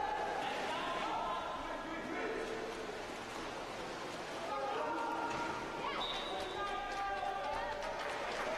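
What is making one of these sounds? Water splashes as swimmers thrash about.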